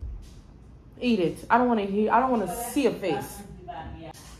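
A young woman talks close by in a lively, sing-song voice.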